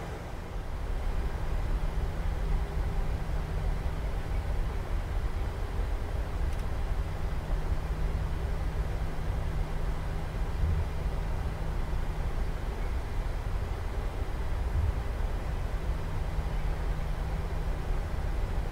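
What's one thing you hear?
A jet engine rumbles and hums steadily.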